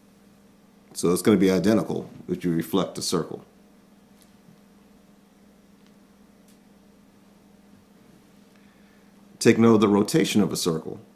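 A man speaks calmly into a close microphone, with pauses.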